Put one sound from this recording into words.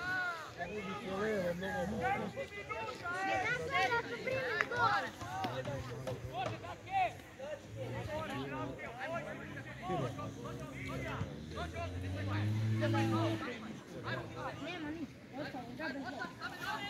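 Young men shout to each other in the distance across an open field.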